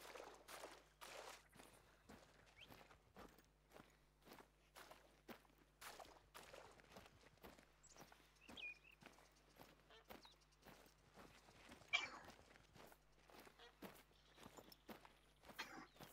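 Footsteps tread steadily over dry ground and grass.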